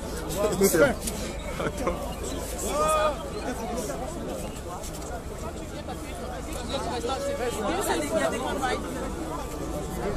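A dense crowd of men and women shout and talk loudly all around, close by.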